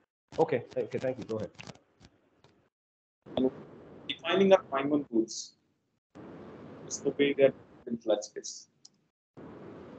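A man speaks calmly through an online call microphone, pausing between phrases.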